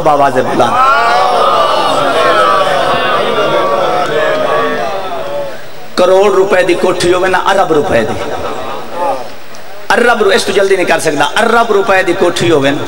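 A man speaks forcefully into a microphone, his voice amplified and echoing.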